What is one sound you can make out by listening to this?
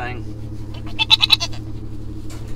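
A hen clucks nearby.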